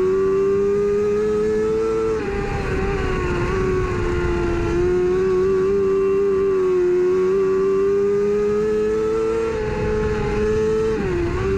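Tyres rumble and spray over a dirt track.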